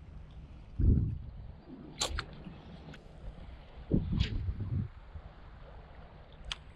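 Small waves lap softly on open water.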